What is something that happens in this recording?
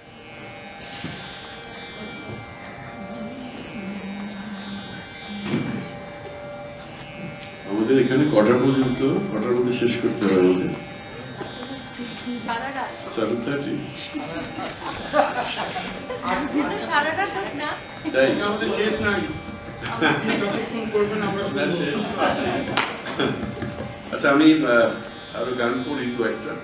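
A harmonium plays a steady drone.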